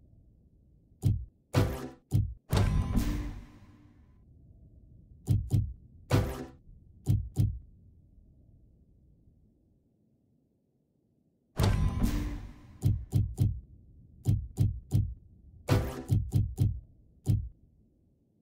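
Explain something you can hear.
Game menu sounds click and chime as selections change.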